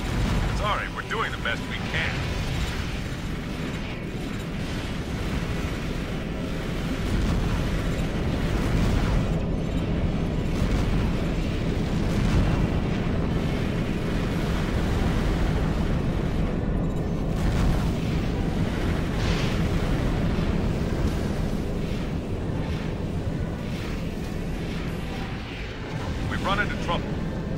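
Jet thrusters roar steadily.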